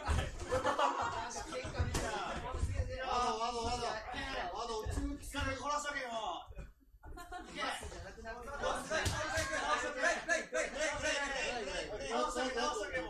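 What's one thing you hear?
Feet shuffle and thump on a padded mat.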